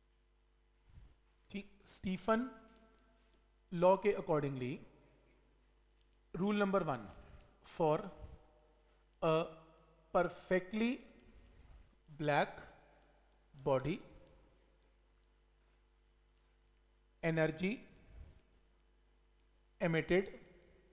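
A man speaks steadily in short phrases, close to a microphone.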